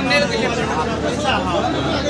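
A crowd of men and women chatters close by.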